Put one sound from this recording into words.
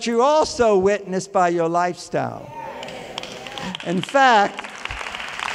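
An elderly man speaks with animation through a microphone in a large echoing hall.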